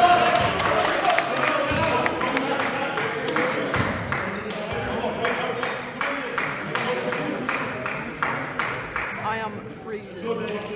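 People chatter and call out in an echoing hall.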